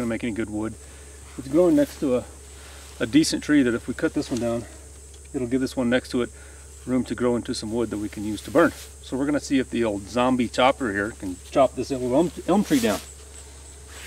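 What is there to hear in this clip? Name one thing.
A middle-aged man talks calmly and close by.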